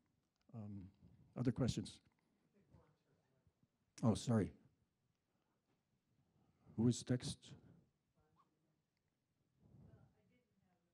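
An older man speaks calmly in short bursts through a microphone and loudspeaker.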